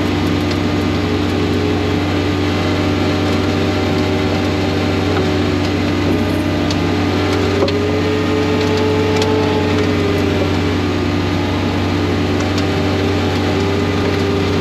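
A snow blower engine roars steadily close by.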